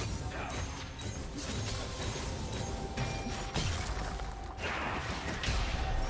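Game characters clash with quick hits and impacts.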